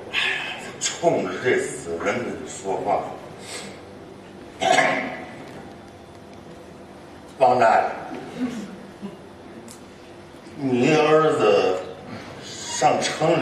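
An elderly man speaks with animation through a microphone and loudspeakers in a hall.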